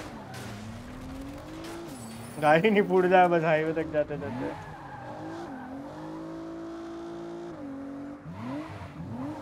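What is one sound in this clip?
A car engine revs and hums steadily, shifting pitch as it changes gear.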